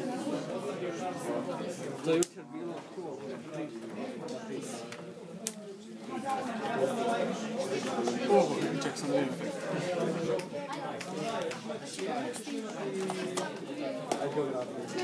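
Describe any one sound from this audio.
Young men talk together nearby.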